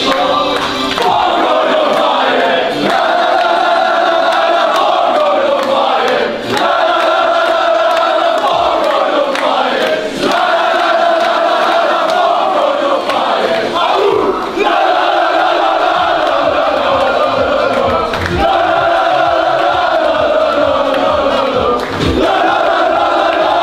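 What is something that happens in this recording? A crowd of young men chants and sings loudly together in an echoing room.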